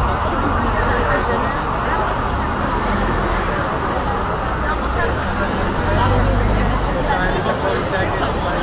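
A large crowd chatters all around outdoors.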